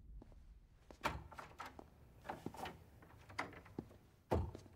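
Footsteps clack on a hard floor in an echoing hall.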